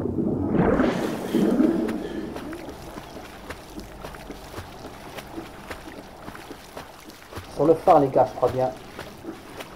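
A young man talks animatedly into a microphone, close by.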